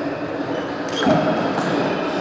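A ping-pong ball is struck with a sharp tap.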